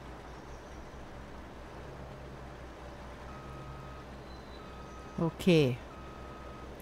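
A tractor engine hums low and steady.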